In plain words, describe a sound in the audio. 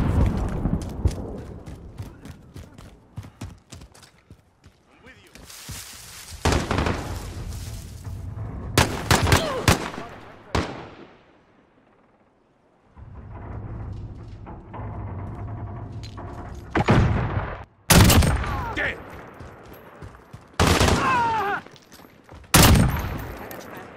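Rapid gunfire cracks in short bursts.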